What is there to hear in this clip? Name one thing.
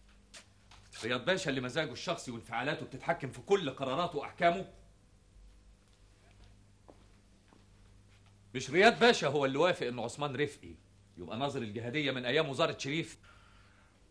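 A man speaks urgently close by.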